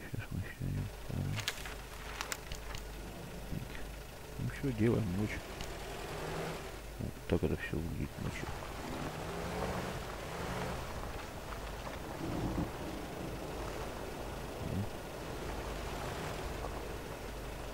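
A vehicle engine idles with a low hum.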